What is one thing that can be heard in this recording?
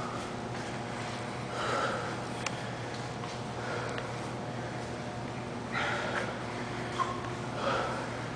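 Bare feet pad softly on a hard floor.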